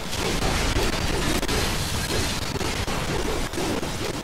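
Explosions burst with sharp bangs.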